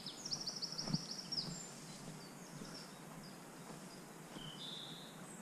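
A dog rustles through long wet grass.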